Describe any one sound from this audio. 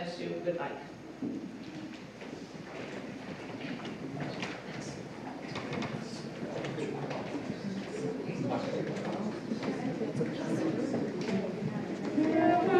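People shuffle and murmur as they move about the room.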